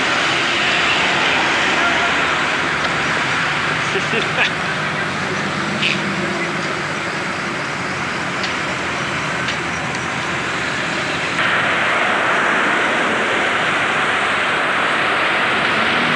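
Tyres roll steadily on a road as a car drives along.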